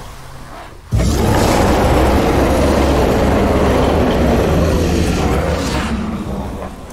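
A giant man bellows with a deep, loud roar.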